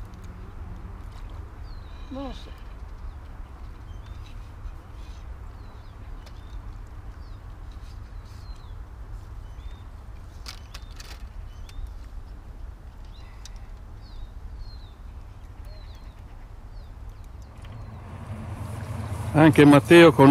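Wind rumbles softly outdoors by the water.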